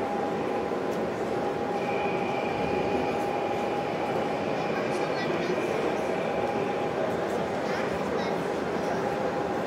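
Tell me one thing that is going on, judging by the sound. A large-scale model steam locomotive rolls along metal rails.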